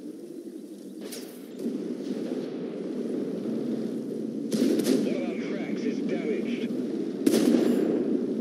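A tank gun fires with loud, sharp booms.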